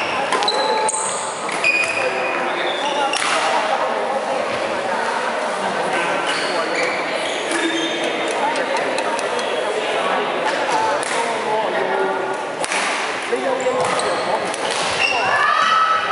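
Several men and women chatter and call out in a large echoing hall.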